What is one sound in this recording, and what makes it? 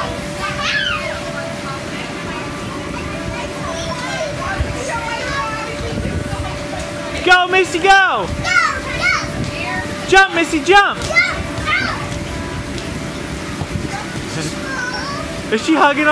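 Children chatter in the background outdoors.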